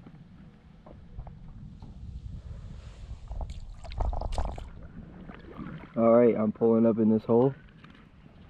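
Water laps softly against a small boat's hull.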